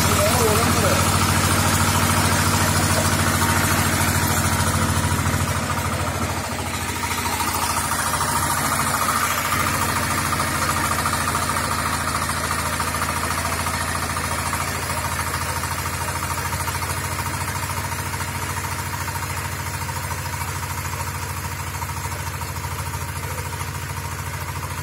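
A small diesel engine chugs steadily and loudly close by.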